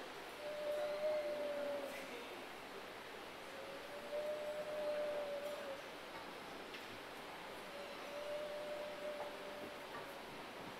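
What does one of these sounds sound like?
A man sings long, drawn-out notes into a microphone.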